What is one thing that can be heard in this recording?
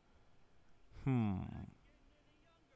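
A young man exclaims briefly into a close microphone.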